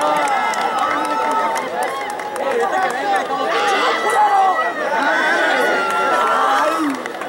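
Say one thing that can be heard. Players slap hands as they pass one another.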